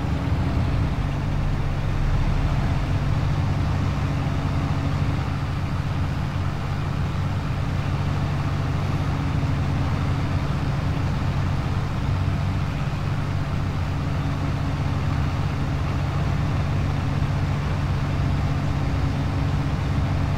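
A forage harvester rumbles nearby as it chops maize.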